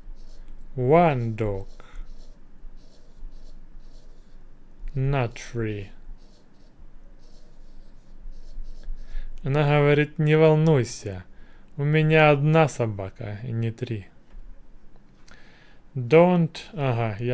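A young man speaks calmly and slowly into a close microphone, in short phrases with pauses.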